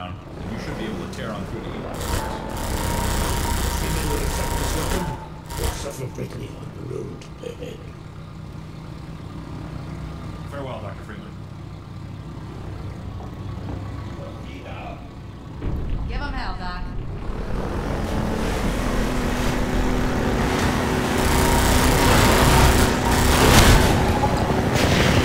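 A boat engine roars steadily.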